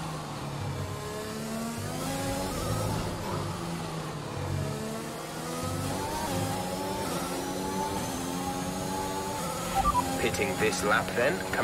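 A racing car engine screams, rising in pitch and dropping with each gear change.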